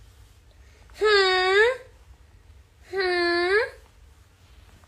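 A young woman sings two long, drawn-out notes.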